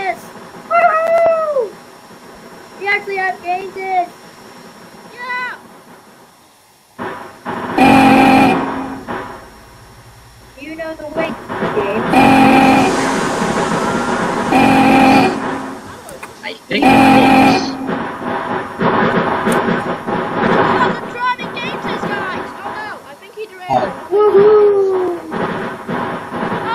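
A small steam locomotive chugs along a track.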